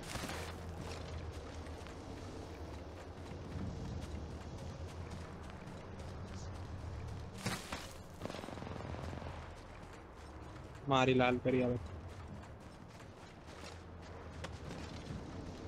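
Footsteps patter quickly over grass and rock.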